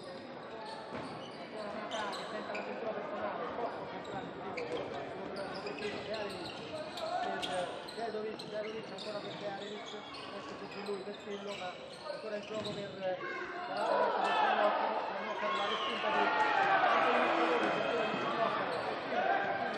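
A crowd of spectators cheers and shouts, growing louder.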